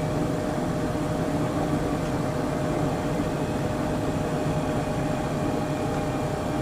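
A train hums and rumbles steadily along the tracks.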